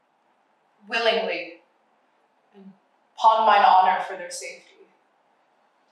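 A young woman speaks nearby with animation.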